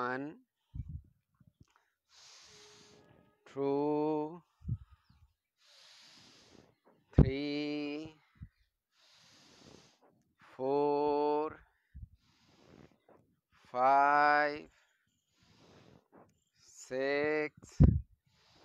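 A man chants in long, drawn-out tones close by.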